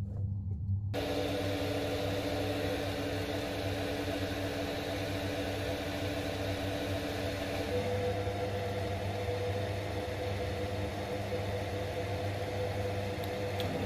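A lathe motor whirs steadily as the chuck spins fast.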